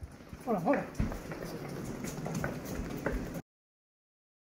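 Boots thud quickly on hard ground as several men run.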